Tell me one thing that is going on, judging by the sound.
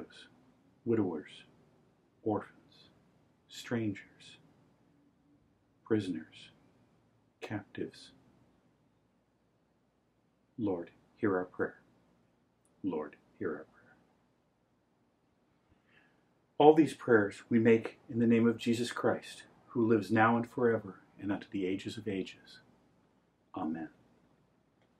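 An elderly man chants slowly in short phrases, close by, with pauses between them.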